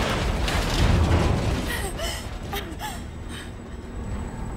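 A woman breathes heavily.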